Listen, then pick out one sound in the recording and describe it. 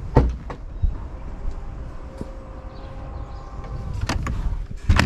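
A power tailgate hums as it opens.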